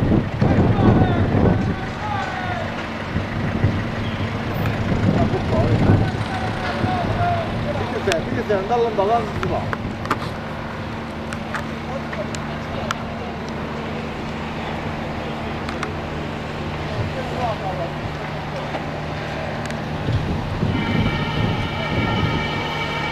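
Wind gusts outdoors, buffeting the microphone.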